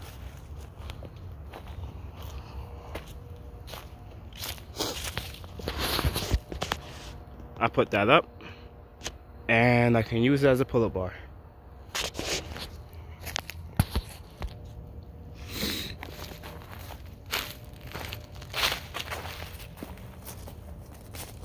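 Footsteps crunch on dry leaf litter.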